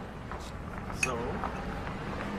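A glass knocks against a table.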